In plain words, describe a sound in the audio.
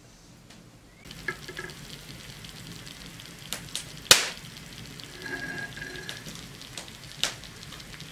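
A hot iron sizzles against sugar.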